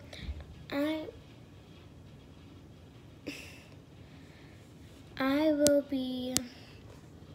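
A young girl speaks and sings in short bursts close by.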